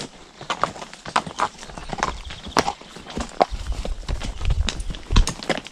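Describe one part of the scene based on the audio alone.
Horse hooves clop steadily on a hard path.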